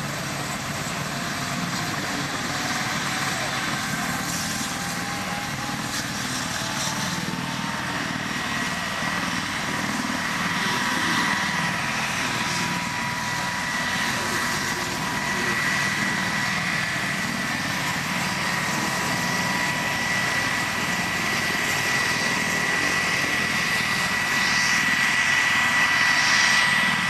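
Helicopter rotor blades whirl with a rhythmic thumping.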